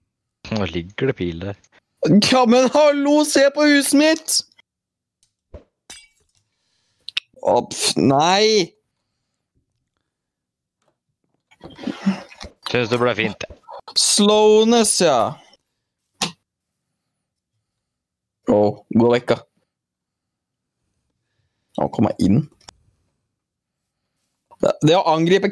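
A young man talks with animation, in bursts with pauses.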